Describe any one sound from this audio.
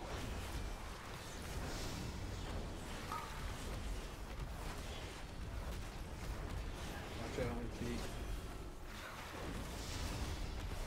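Spell effects crackle and whoosh in a hectic battle.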